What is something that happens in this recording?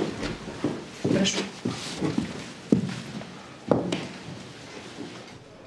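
Footsteps thud across a floor.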